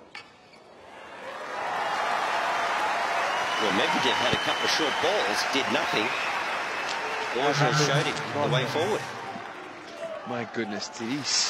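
A large crowd applauds and cheers loudly in an open stadium.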